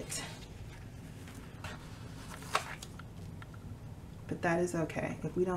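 Paper rustles softly under hands.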